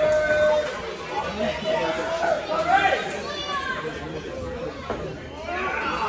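Wrestlers thud onto the ring mat.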